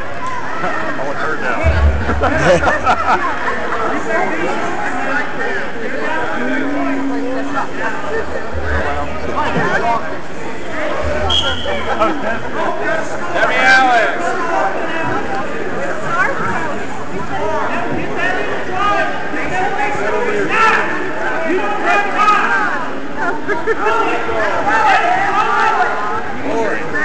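A crowd of spectators talks and cheers, echoing in a large hall.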